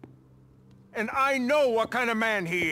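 A young man speaks tensely close by.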